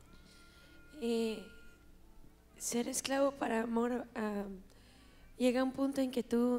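A young woman speaks calmly into a microphone over loudspeakers in a large echoing hall.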